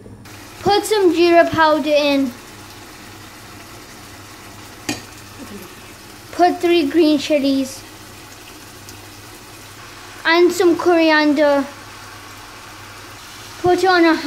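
A wooden spoon scrapes and stirs food in a pot.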